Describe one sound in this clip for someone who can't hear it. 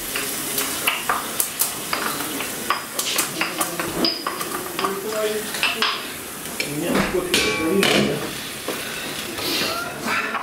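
A spoon scrapes and clinks against a metal tin.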